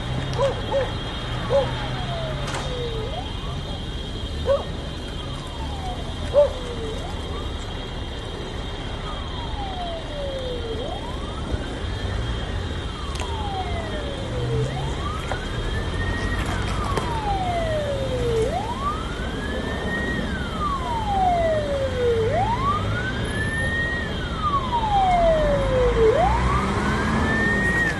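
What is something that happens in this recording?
A car engine hums steadily nearby.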